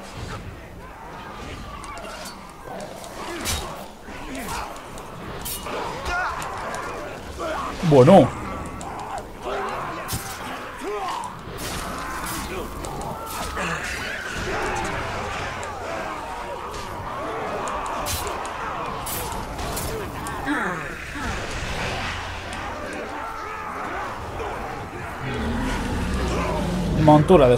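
Blades clash and strike again and again in a fierce fight.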